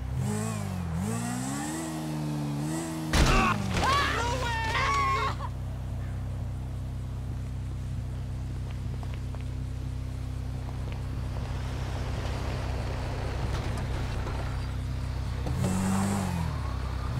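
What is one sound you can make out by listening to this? A motorbike engine hums and revs.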